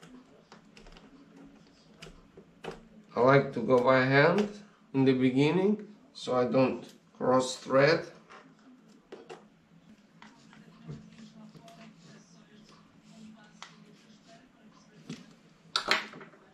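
Small metal and plastic parts click and rattle as hands handle them.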